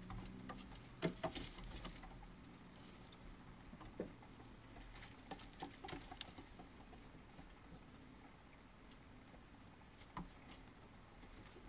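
Small animals patter and scratch on wooden boards.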